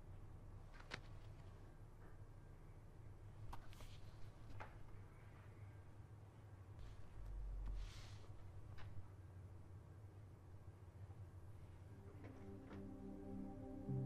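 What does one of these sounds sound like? Pages of a book rustle softly as they turn.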